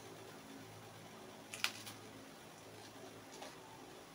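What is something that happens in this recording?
A person chews food noisily up close.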